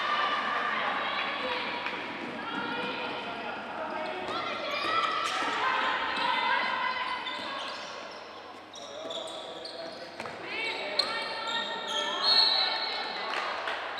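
A ball bounces on a wooden floor in a large echoing hall.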